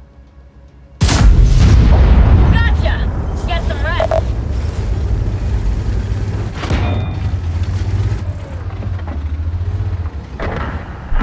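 A tank engine rumbles deeply as the tank drives.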